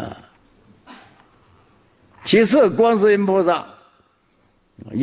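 An elderly man speaks in a slow, drawn-out voice through a microphone.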